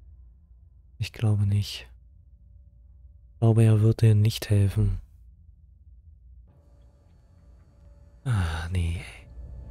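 A young man speaks in short, lively bursts close to a microphone.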